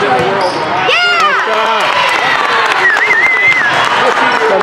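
Young girls cheer loudly after a point.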